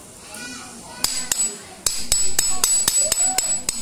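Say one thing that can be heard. Metal knocks sharply against a metal pipe, over and over.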